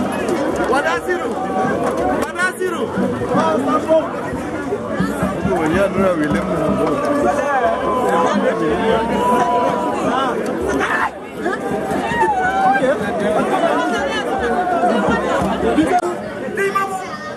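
A crowd of men and women shouts and talks excitedly close by, outdoors.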